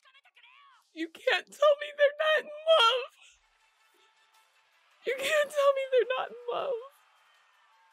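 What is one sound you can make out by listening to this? A young woman sobs and wails loudly close to a microphone.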